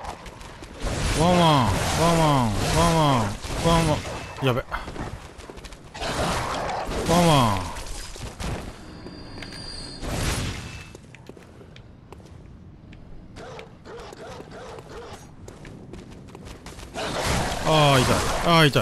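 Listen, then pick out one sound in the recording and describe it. Dogs snarl and yelp loudly in short falling cries.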